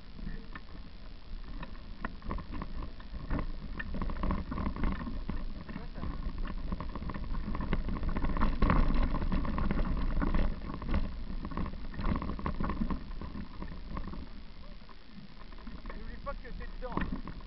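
Bicycle tyres roll and crunch over a bumpy dirt trail.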